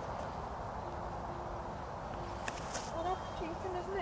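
A bird of prey flaps its wings as it lands.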